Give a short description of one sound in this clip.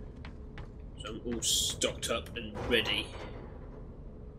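A metal locker door creaks open with a clang.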